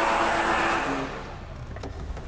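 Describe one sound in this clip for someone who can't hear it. Tyres screech on concrete.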